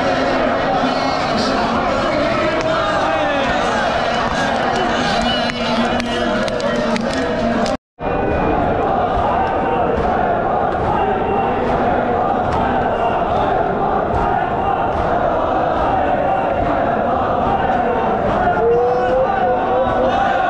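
Many men beat their chests in rhythm.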